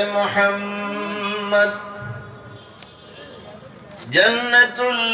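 An elderly man chants in a long, drawn-out voice through a microphone and loudspeakers.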